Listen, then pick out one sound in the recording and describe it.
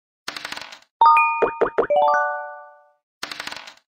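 A chiming jingle rings out and fades.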